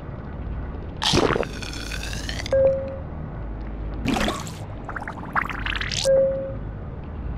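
Short electronic whooshes sweep past now and then.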